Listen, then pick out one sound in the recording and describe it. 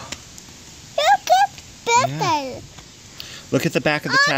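A young child chatters in a high, excited voice close by.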